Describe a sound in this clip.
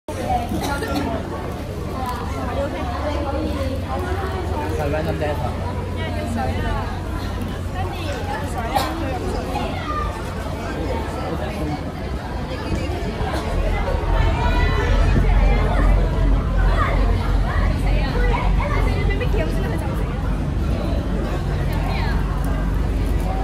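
Young women chatter and laugh nearby, outdoors.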